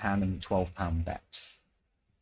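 A man speaks calmly through a loudspeaker.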